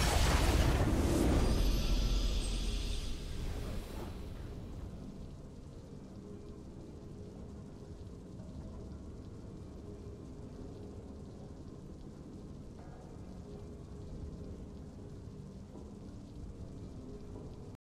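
A triumphant victory fanfare plays.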